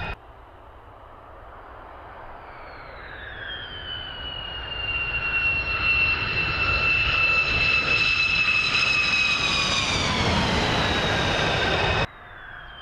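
A jet engine whines loudly as a fighter jet approaches and roars past.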